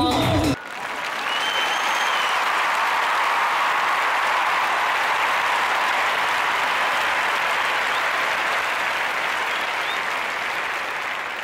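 A large audience claps steadily in a big hall.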